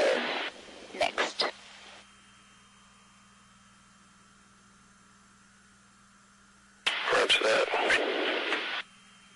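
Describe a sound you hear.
A man speaks briskly over a crackly radio intercom.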